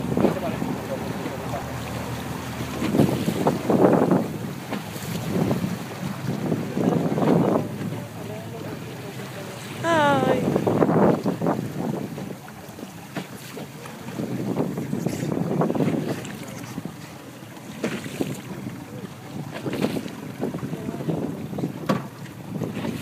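Waves slosh and splash against a boat's hull.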